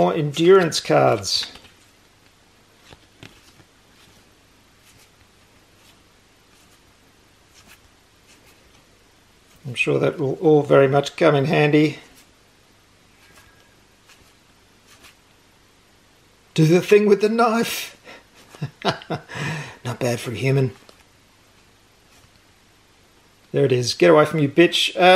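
Playing cards slide and rustle softly against each other in a hand.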